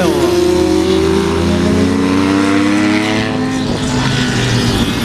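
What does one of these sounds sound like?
Motorcycle engines roar loudly past at high speed, their pitch falling away.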